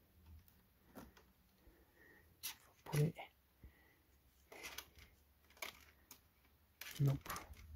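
Cables rustle.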